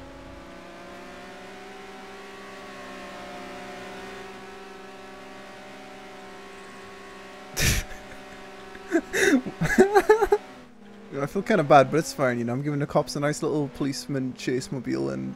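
A sports car engine hums steadily at speed.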